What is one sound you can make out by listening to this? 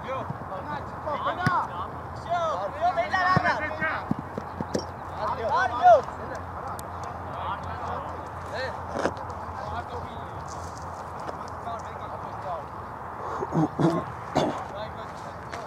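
Young men shout to each other across an open field, some way off.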